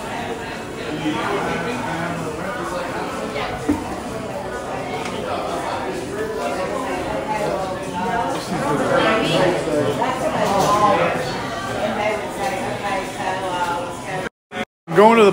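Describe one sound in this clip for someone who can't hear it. Many people chatter in a busy, echoing room.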